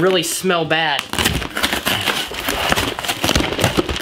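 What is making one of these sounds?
Packing tape and cardboard rip and crinkle as a box is torn open.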